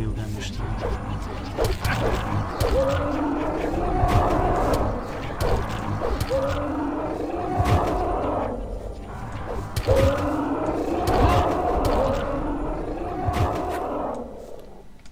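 A heavy axe strikes in a melee fight with sharp, clashing hits.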